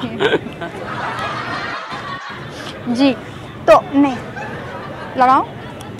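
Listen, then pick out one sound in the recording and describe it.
A young woman talks playfully close by.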